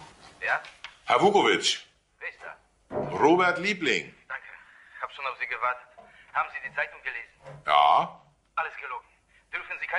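A middle-aged man talks on a phone with animation.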